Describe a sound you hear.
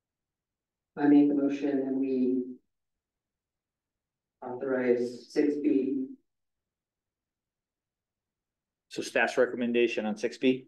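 A man speaks calmly in short phrases through a microphone.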